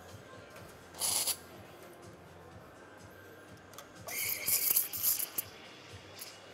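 An espresso machine hisses in short bursts.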